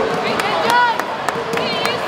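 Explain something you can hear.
Young women clap their hands.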